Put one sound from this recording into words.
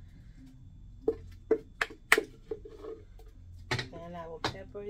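A plastic blender jar knocks against a metal pot.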